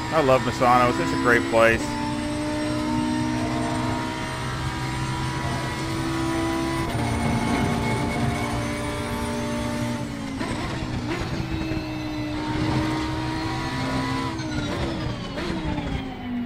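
Gear shifts crack sharply as the engine revs.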